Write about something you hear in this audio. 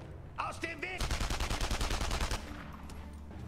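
An automatic gun fires a rapid burst.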